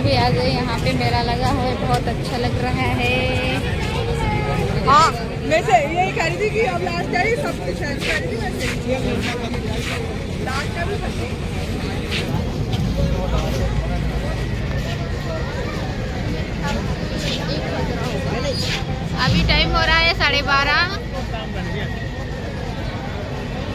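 A busy crowd chatters all around outdoors.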